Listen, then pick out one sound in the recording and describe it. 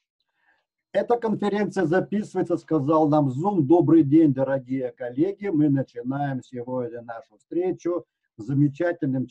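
An older man speaks calmly into a microphone, heard as if over an online call.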